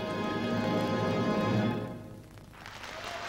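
A woman sings a long high note on stage.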